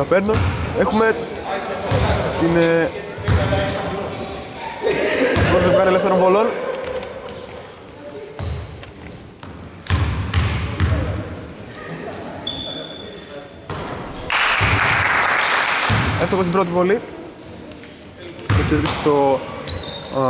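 Men call out and talk loudly in a large echoing hall.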